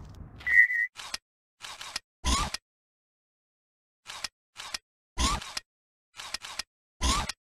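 Menu selections click sharply.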